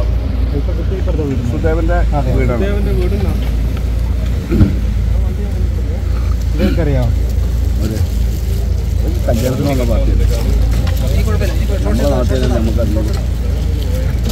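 A man speaks nearby in a low, strained voice.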